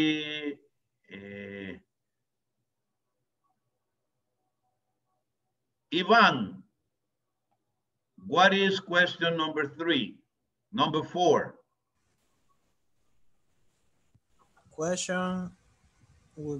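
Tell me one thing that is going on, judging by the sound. A middle-aged man speaks calmly over an online call, in short phrases with pauses.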